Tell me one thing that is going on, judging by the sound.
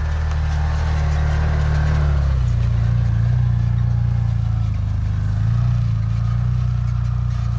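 A small off-road vehicle's engine hums steadily as it drives over grass.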